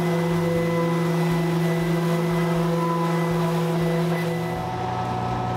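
An electric sander whirs steadily over wood.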